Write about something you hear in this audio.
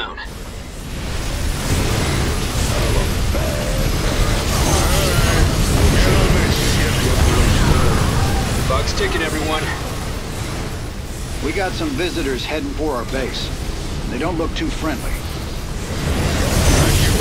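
Laser weapons fire in rapid bursts amid a rumbling battle.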